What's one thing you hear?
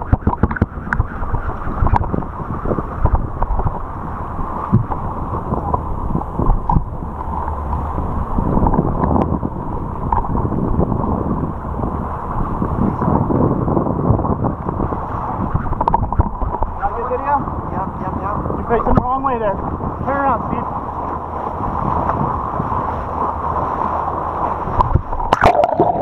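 Water rushes and splashes alongside a moving boat.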